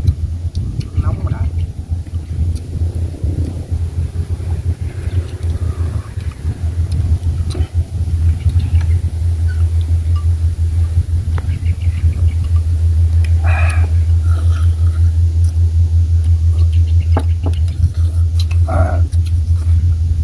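A man speaks briefly and casually nearby.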